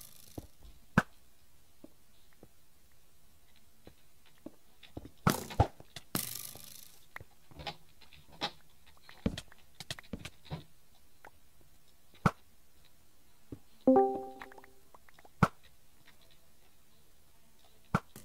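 A bow is drawn and an arrow shoots with a twang.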